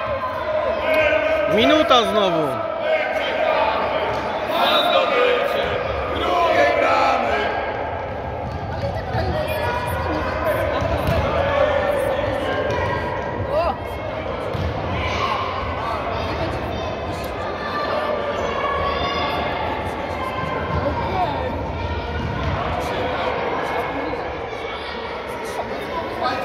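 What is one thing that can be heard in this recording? Children shout and call out across a large echoing hall.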